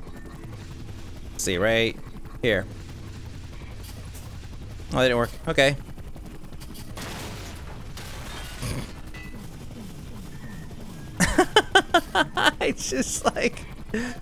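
A hovering robot's engine hums with a low, steady drone.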